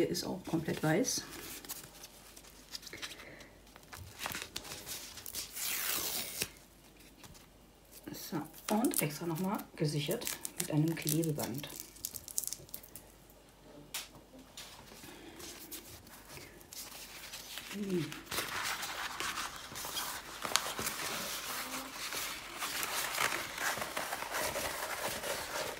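A paper roll rustles and crinkles as it is handled.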